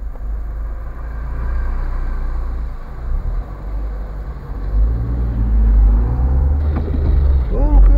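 A car engine hums steadily from inside the cab.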